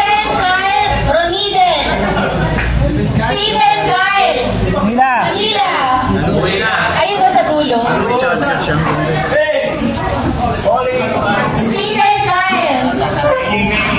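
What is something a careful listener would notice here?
A crowd of men chatter nearby.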